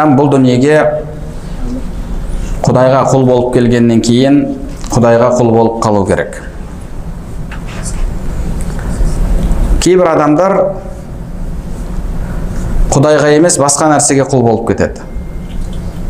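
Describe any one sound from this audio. A young man chants melodically into a microphone in short phrases, with pauses between them.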